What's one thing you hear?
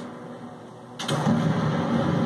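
An explosion booms from a video game.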